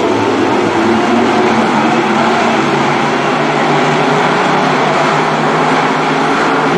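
Many race car engines roar loudly as the cars speed by.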